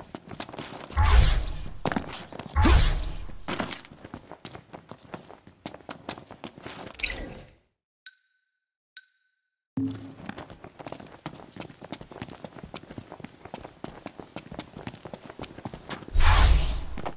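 Heavy whooshing thuds boom now and then.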